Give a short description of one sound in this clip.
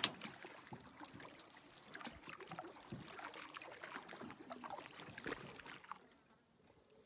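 A canoe paddle dips and splashes in water.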